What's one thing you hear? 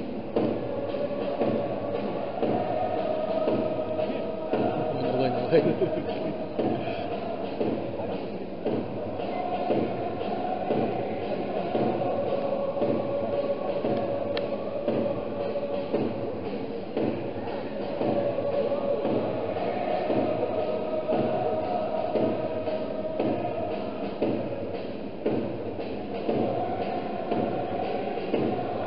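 A large stadium crowd chants loudly in unison, echoing under the roof.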